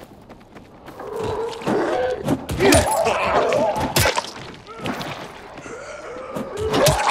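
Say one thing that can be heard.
A blade slashes and thuds into flesh.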